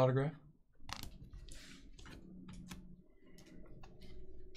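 Plastic card cases click and tap against each other.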